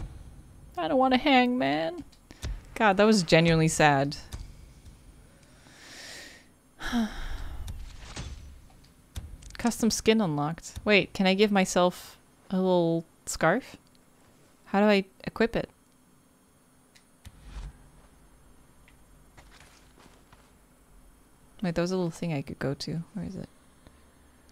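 A young woman talks with animation into a close microphone, in bursts with pauses.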